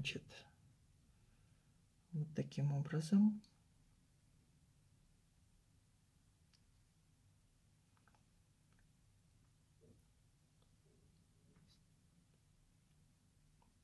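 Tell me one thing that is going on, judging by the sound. Metal jewellery clicks faintly as fingers handle a ring.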